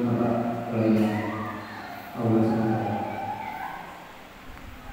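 A man chants into a microphone, heard through a loudspeaker in an echoing hall.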